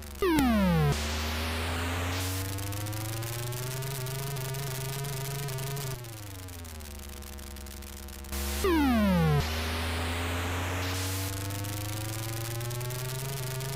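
A buzzy electronic car engine drones, rising and falling in pitch.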